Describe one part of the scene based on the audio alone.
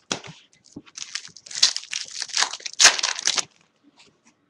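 A foil card pack wrapper crinkles as it is torn open.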